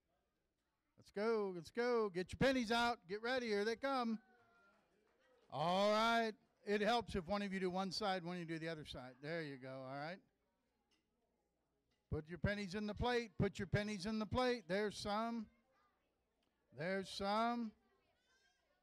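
A middle-aged man speaks with animation into a microphone in an echoing hall.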